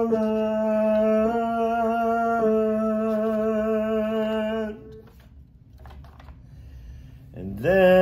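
A man sings long, steady notes close by.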